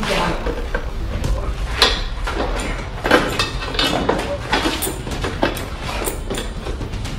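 Several men talk and call out nearby in an echoing room.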